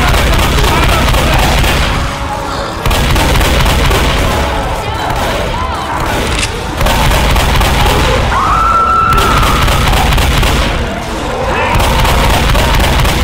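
A shotgun fires in rapid, booming blasts.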